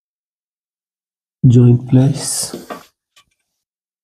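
A metal ruler is set down on a wooden board.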